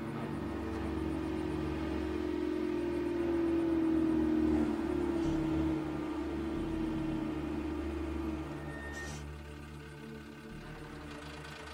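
A bus engine rumbles as the bus approaches and slows to a stop.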